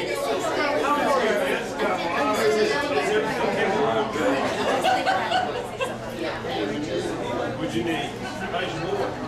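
A crowd of men and women chatter in an echoing indoor hall.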